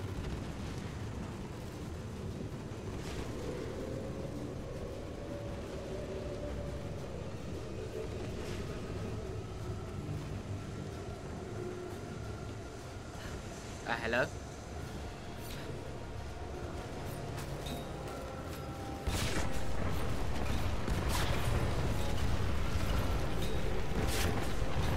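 A storm wind roars steadily and grows louder.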